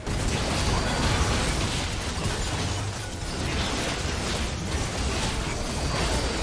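Spell effects crackle and burst in a fantasy battle.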